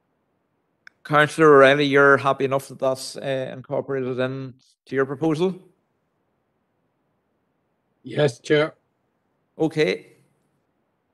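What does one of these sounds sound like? An older man speaks calmly into a microphone, in short phrases with pauses.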